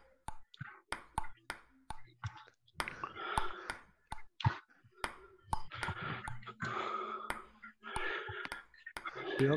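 A table tennis ball clicks sharply back and forth off paddles and a table.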